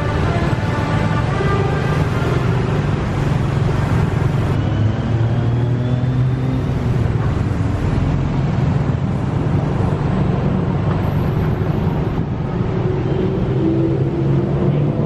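City traffic hums steadily all around.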